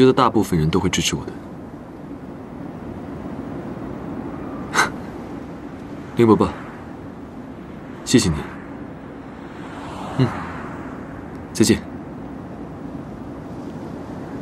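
A young man talks warmly on a phone, close by.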